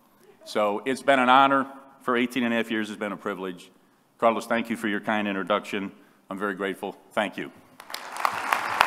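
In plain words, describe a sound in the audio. An older man speaks calmly through a microphone in a large hall.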